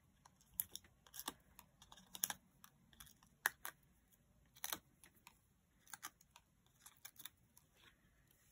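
Paper crinkles and rustles softly close by.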